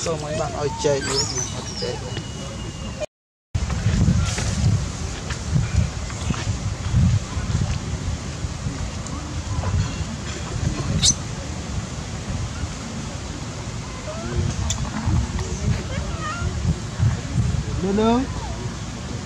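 Monkeys squeal and chatter.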